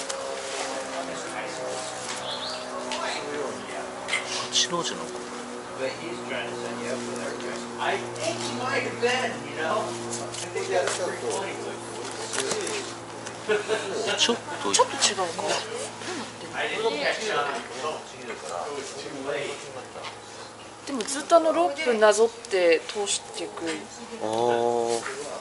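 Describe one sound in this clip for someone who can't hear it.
A rope rustles and slides as it is tied into a knot.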